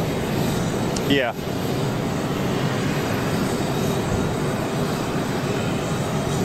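Jet engines whine and roar nearby.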